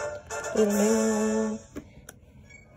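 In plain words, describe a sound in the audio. A handheld game plays a short bright jingle.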